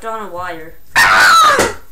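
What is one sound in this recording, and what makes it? A young boy shouts loudly into a microphone.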